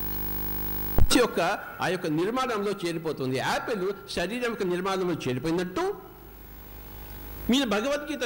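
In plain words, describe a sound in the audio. An elderly man speaks with animation into a microphone over a loudspeaker.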